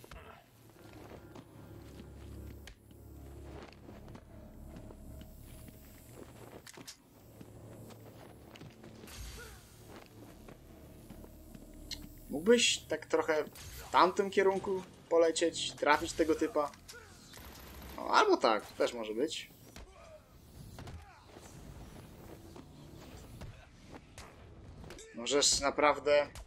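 Punches and kicks thud in a brawl.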